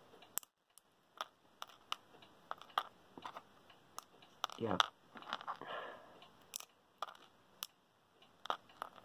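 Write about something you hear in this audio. Small plastic parts click and tap under fingers.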